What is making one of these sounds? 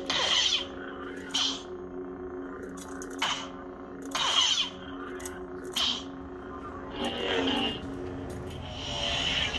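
A toy lightsaber hums steadily.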